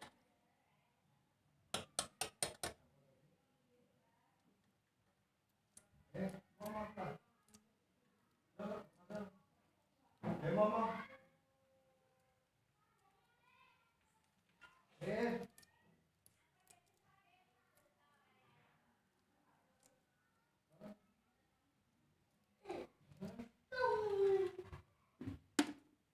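Fingers crack and peel a small eggshell with soft crackling.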